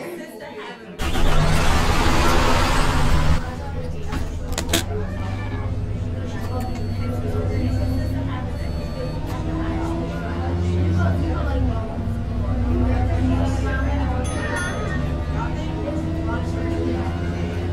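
A bus engine rumbles low and steady, rising as the bus pulls away.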